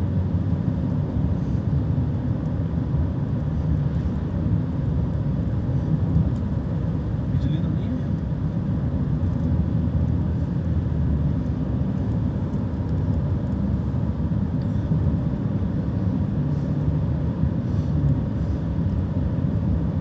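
Strong wind buffets and roars against the microphone outdoors.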